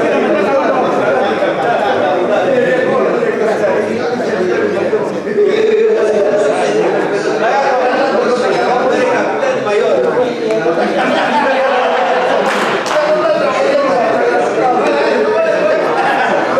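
Several men talk and chatter at once nearby.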